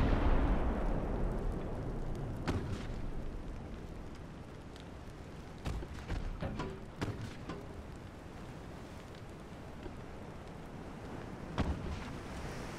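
Naval guns fire in booming blasts.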